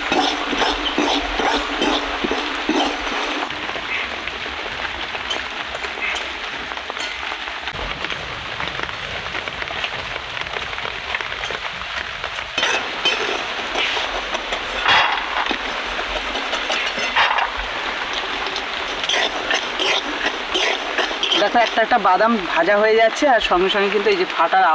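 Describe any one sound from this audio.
A spatula scrapes through sand and peanuts in a metal wok.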